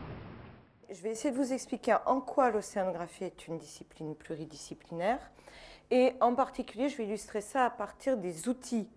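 An elderly woman speaks with animation into a microphone.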